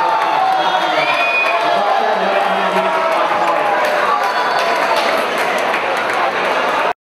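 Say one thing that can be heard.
A crowd chatters and murmurs in a large hall.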